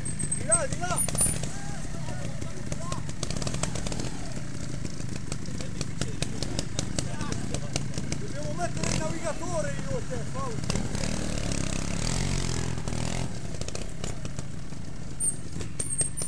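A motorcycle engine idles and revs in bursts nearby.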